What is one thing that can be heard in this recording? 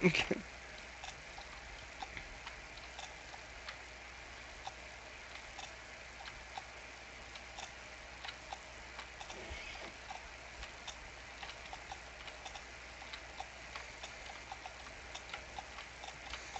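Hooves clop as a unicorn runs.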